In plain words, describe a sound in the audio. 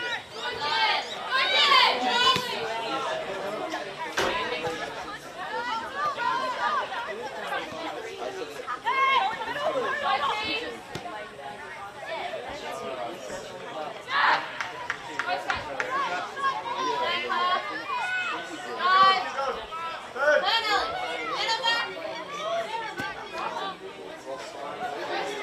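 Young women shout to each other across an open field outdoors.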